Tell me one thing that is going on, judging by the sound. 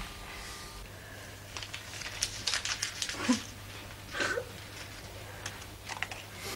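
A woman sobs.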